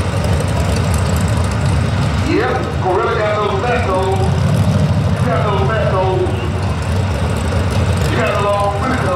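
A powerful car engine rumbles loudly at idle.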